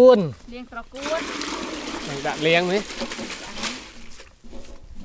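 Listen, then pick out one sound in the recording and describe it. A heap of greens is tipped into a metal basin with a rustling rush.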